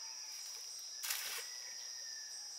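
A fishing net splashes onto calm water.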